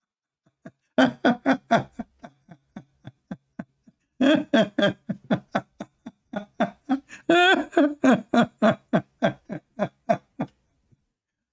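A man laughs loudly in short bursts.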